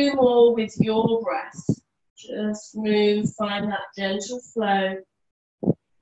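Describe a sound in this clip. A woman speaks calmly and clearly, close to a microphone.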